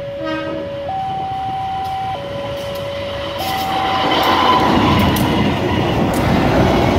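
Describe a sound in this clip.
A train rumbles and clatters past on the rails, growing louder.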